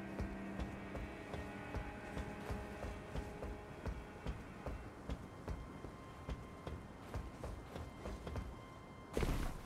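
Footsteps run quickly over stone and roof tiles.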